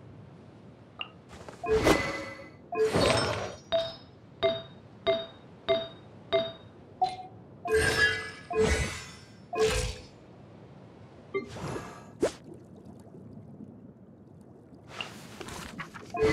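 Soft menu chimes and whooshes ring out in a quick series.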